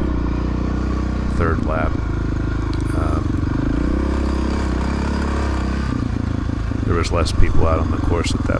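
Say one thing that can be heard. A dirt bike engine runs up close, revving up and down.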